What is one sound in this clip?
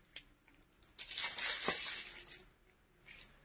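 Fabric rustles as clothes are handled.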